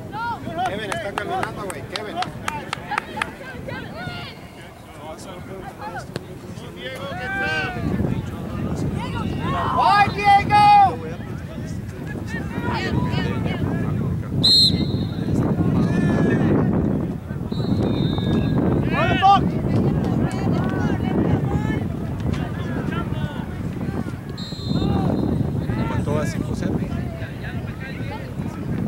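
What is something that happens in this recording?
Children shout to each other outdoors on an open field.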